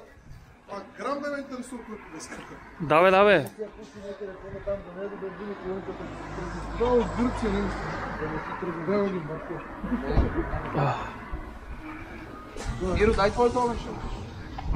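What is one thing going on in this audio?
Several men talk and laugh together close by.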